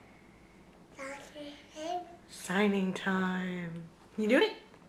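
A toddler babbles and calls out nearby.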